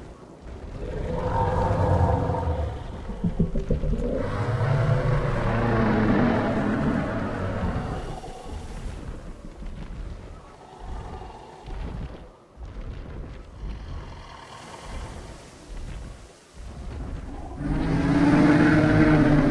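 An elephant rumbles and groans low.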